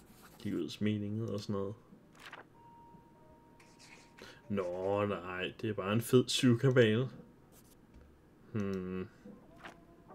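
A man reads aloud expressively, close to a microphone.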